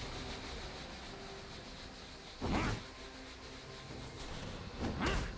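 Video game weapons clash and hit in quick strikes.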